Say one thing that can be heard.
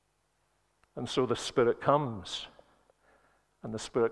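An elderly man speaks with emphasis through a microphone.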